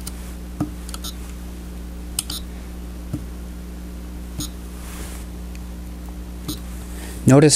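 Plastic buttons on a chess clock click as they are pressed.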